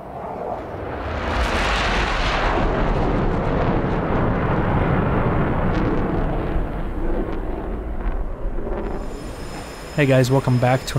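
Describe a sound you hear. A jet engine roars loudly as a fighter plane flies past.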